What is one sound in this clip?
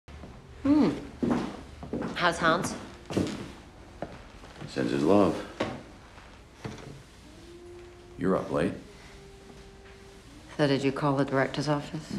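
A middle-aged woman speaks softly and close by.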